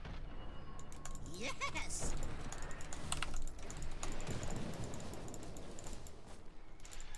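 Magic spells zap and crackle in a busy game battle.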